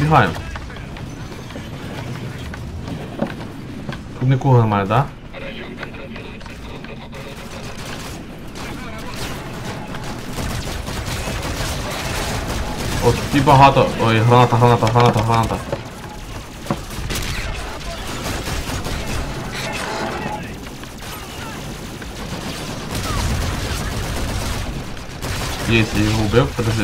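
A young man talks into a close microphone.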